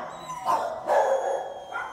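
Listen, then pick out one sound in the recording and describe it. A dog pants.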